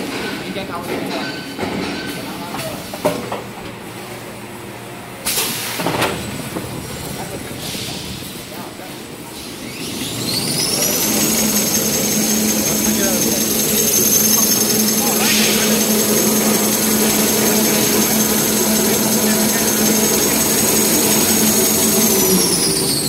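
A paper machine hums and whirs steadily as its rollers turn.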